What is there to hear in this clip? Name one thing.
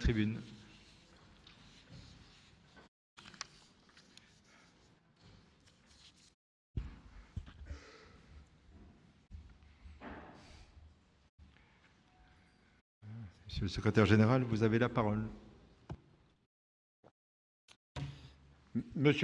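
People murmur quietly in a large echoing hall.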